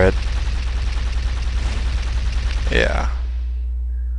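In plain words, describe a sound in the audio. A heavy gun fires rapid bursts.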